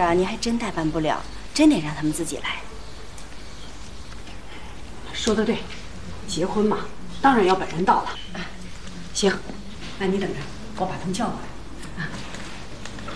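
A younger woman answers calmly and pleasantly, close by.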